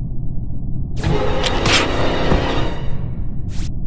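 A sharp slashing burst from a game as a character is killed.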